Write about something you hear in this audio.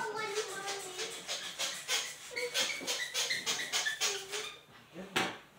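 A spray bottle hisses in quick short bursts.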